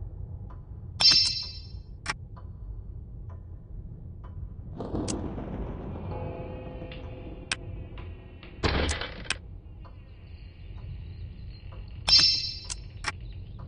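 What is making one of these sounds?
A bright game chime rings twice.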